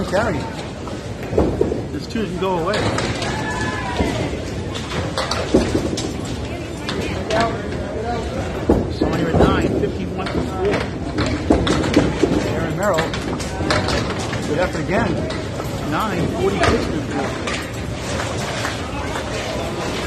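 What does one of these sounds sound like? Bowling balls roll down wooden lanes with a low rumble.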